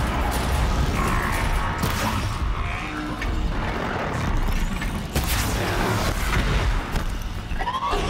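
A large machine roars and stomps.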